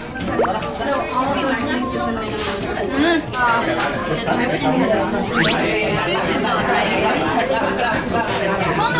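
A second young woman speaks brightly close by.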